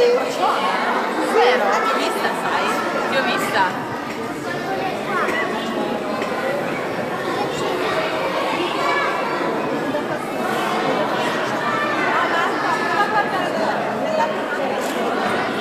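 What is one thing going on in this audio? A young woman talks warmly and close by.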